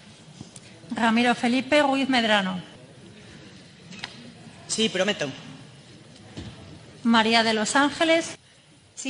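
A man reads out names over a microphone.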